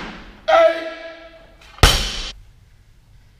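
A loaded barbell crashes onto a hard floor and bounces with a metallic clang.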